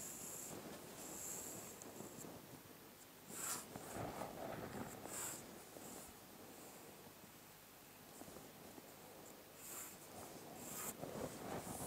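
A pencil scratches across paper.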